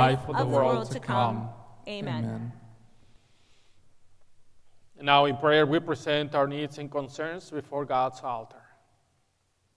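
A man speaks calmly into a microphone in an echoing hall.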